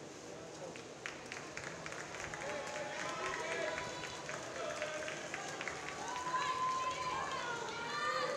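People cheer and shout around an echoing pool.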